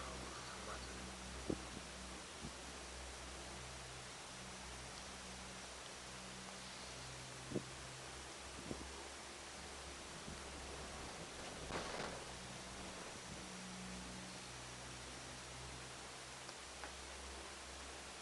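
A cable car cabin hums steadily as it glides along its cable.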